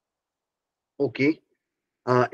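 A middle-aged man speaks calmly, heard through an online call.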